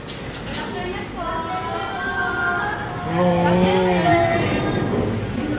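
A young woman greets loudly up close.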